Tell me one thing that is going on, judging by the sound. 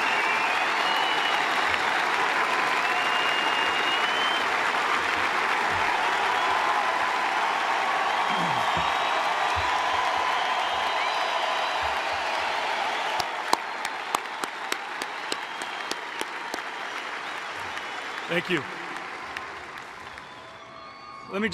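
A large stadium crowd applauds and cheers.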